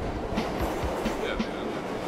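A drum kit plays a steady beat.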